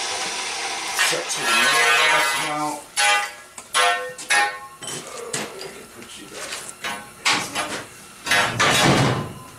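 Metal bars clang and rattle against each other.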